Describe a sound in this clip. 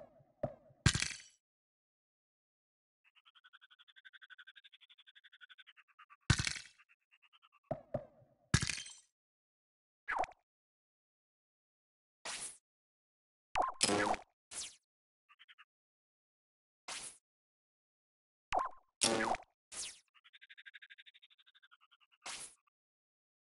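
Short game interface clicks and pops sound now and then.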